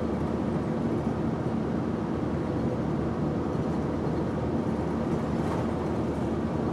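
Tyres roll over the road with a low rumble.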